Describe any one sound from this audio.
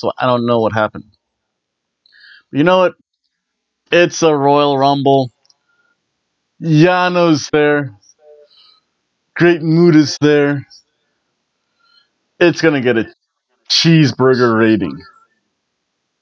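A middle-aged man talks with animation into a close microphone, in short bursts with pauses.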